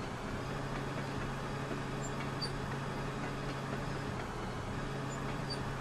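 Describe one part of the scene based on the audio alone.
A heavy truck engine rumbles steadily while driving.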